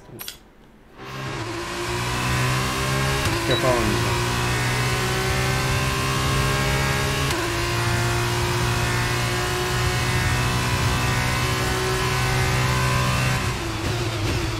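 A racing car engine revs high and roars steadily as it accelerates.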